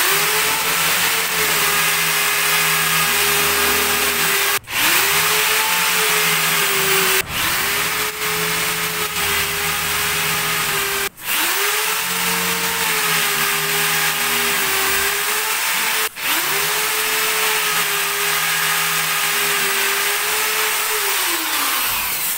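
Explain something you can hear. A power drill whirs in steady bursts, briefly stopping between them.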